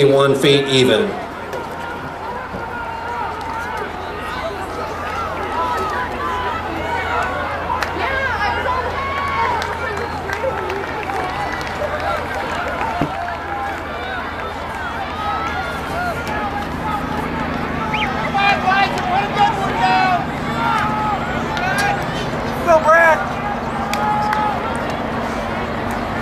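A crowd of young people chatter and call out at a distance outdoors.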